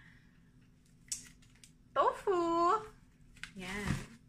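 A plastic package crinkles and rattles in hands.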